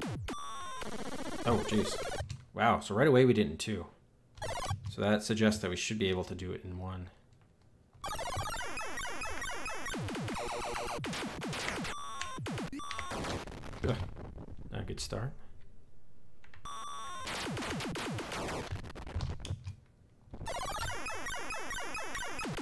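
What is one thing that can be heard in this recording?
Electronic arcade game effects beep, zap and whine in rapid bursts.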